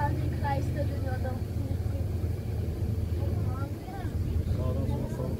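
Water churns and hisses in a boat's wake.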